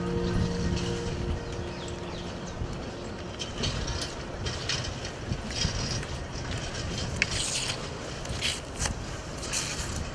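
Leaves rustle and snap as plants are picked by hand.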